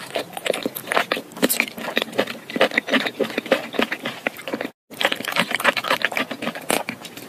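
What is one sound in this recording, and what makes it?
A woman slurps and chews wet, slippery food close to a microphone.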